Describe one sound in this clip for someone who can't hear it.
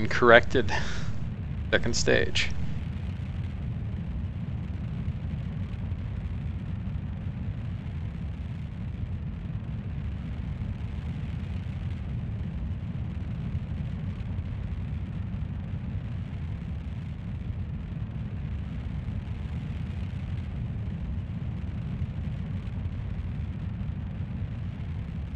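A rocket engine rumbles steadily.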